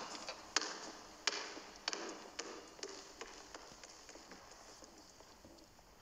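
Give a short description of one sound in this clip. A basketball bounces with an echo in a large hall.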